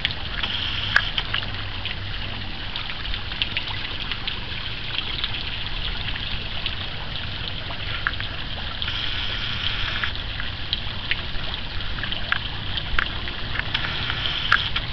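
A small garden fountain sprays water that splashes onto a pond's surface.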